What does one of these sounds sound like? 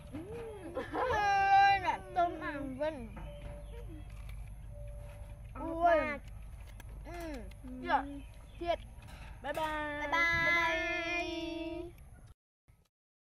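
Young girls talk and exclaim with animation close by.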